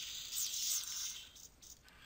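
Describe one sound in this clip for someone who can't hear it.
A laser blaster fires a short zap.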